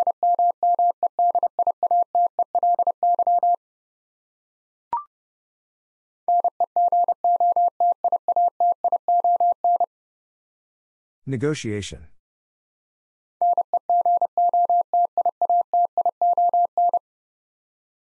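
A Morse code key taps out quick, steady beeps.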